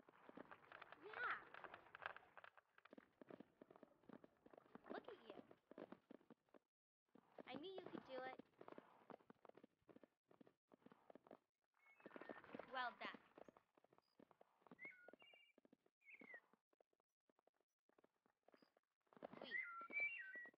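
A horse's hooves thud in a quick, steady gallop.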